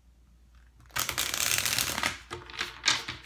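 Paper rustles as pages are handled.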